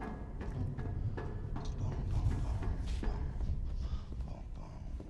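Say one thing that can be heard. Footsteps descend metal stairs.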